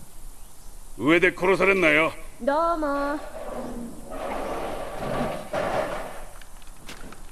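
A young girl calls down from above.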